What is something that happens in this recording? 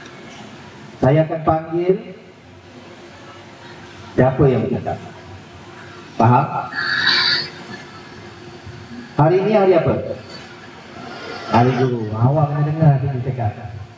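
A man speaks into a microphone over a loudspeaker in short phrases, with echo.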